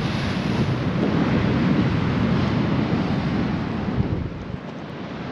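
Wind blows hard outdoors and rumbles against the microphone.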